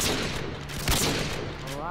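A sniper rifle fires a shot in a video game.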